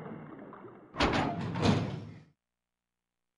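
A heavy metal door creaks open.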